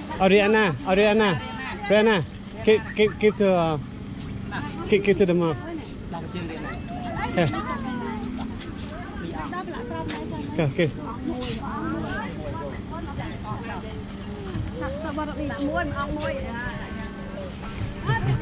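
Women and children chatter nearby.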